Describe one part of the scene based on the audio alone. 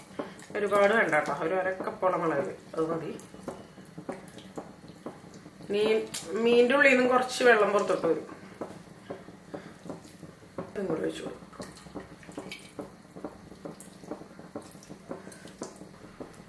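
Fingers pat spice paste softly onto fish in a pot.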